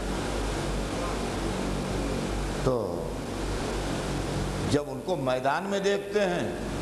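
An elderly man speaks into a microphone in a slow, chanting voice, heard through a loudspeaker.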